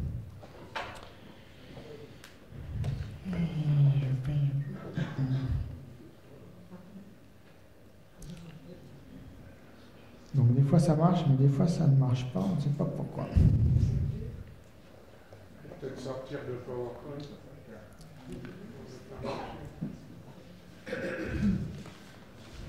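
A man speaks calmly through a microphone in a large hall, with pauses.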